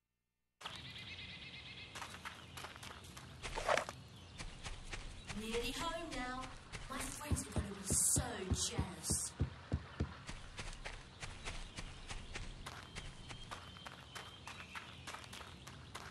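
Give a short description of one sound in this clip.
Heavy footsteps thud steadily on the ground and on wooden planks.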